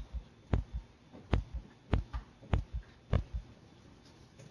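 A marker squeaks and taps as it writes on a board.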